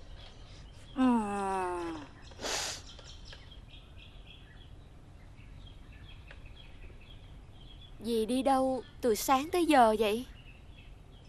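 A woman speaks emotionally close by.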